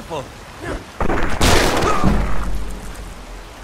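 A heavy mace strikes a man with a loud, crunching thud.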